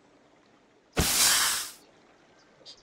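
A short burst of rushing fire roars loudly.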